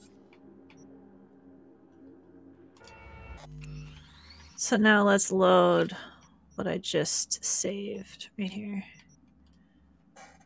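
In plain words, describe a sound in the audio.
Short electronic beeps and whooshes sound in quick succession.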